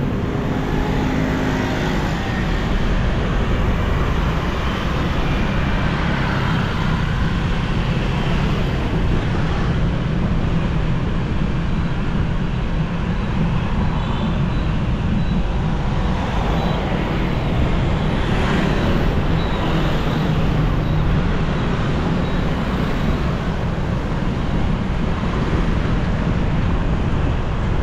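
A motorbike engine hums steadily close by as it rides along a street.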